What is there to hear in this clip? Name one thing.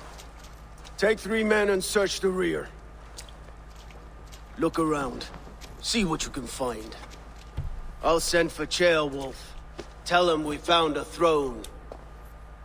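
A man speaks in a deep, calm voice, heard through speakers.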